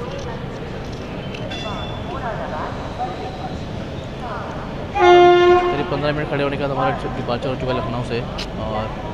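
A train rolls slowly along the tracks with a steady low rumble.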